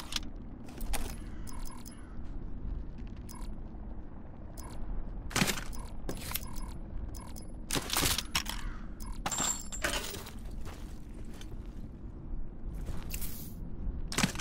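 Short clicks and rattles sound as weapon gear is picked up and swapped.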